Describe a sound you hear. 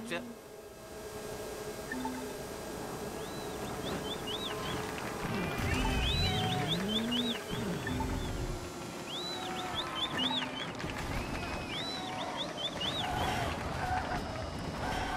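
A small kart engine hums steadily as it drives.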